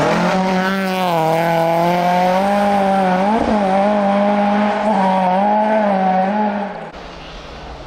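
A rally car engine roars loudly at high revs close by.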